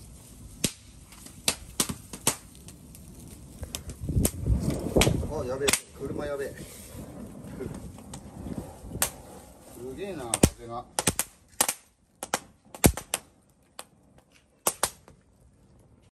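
Burning straw crackles and pops.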